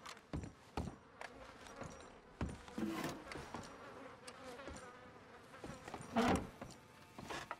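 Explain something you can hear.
Rain patters on a window.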